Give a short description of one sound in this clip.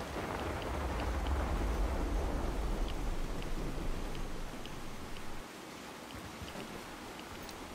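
Footsteps crunch slowly across a gritty floor.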